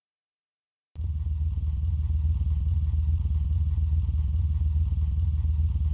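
A racing car engine drones steadily at speed.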